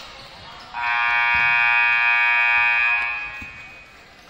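A loud buzzer blares for a few seconds.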